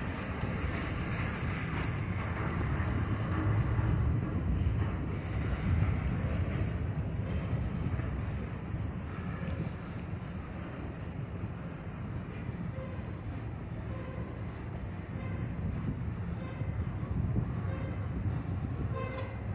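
Freight cars roll slowly past with a low rumble and clatter of wheels on rails.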